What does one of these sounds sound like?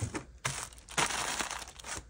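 A hand brushes across a hard surface.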